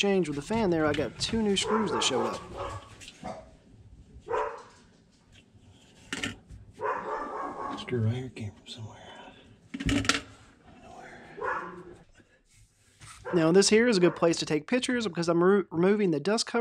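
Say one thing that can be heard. Plastic parts click and knock as they are handled.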